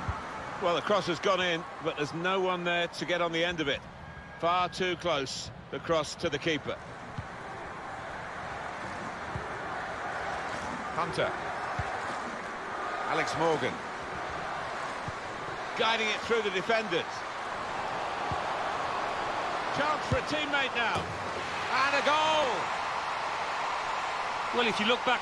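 A large crowd cheers and murmurs steadily in a stadium.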